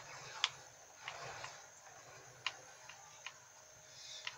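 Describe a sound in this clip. Gunshots from a video game crack faintly through a television speaker.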